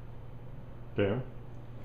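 A dog gives a short bark close by.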